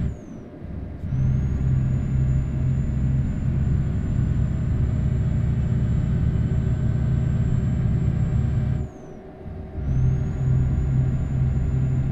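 A truck engine drones steadily, dropping away briefly twice.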